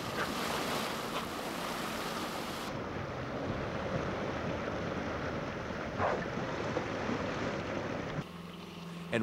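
Water splashes as an orca surfaces close by.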